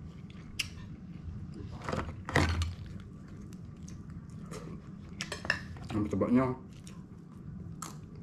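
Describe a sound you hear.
Lobster shells crack and crunch in a man's hands.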